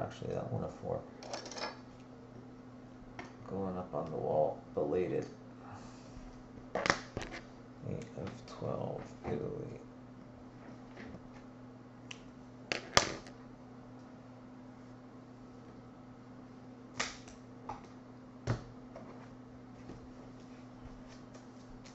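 Trading cards rustle and tap as they are handled.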